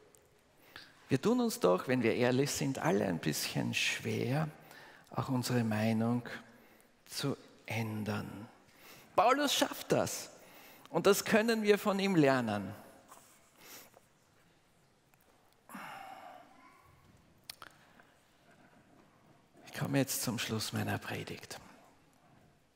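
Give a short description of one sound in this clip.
An older man speaks with animation through a microphone in a large echoing hall.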